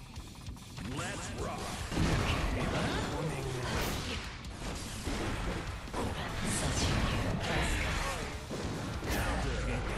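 Swords slash and blows land with loud crashing hits in a fighting game.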